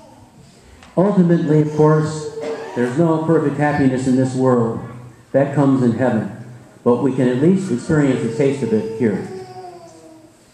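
A man sings slowly through a microphone in a large echoing hall.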